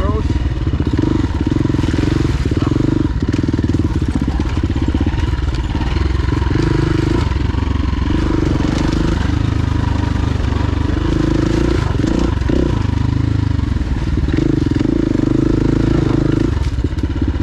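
A dirt bike engine revs and rumbles up close, rising and falling as the rider works the throttle.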